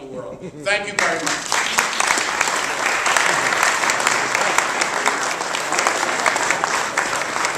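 A crowd applauds and cheers loudly in a large room.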